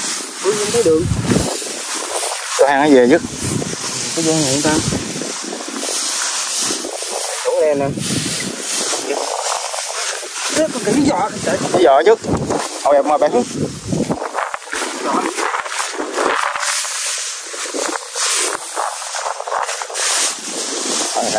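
Wind blows across open ground.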